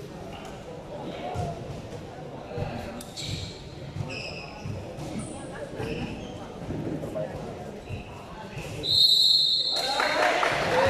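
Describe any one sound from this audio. A crowd of young people chatter in the distance.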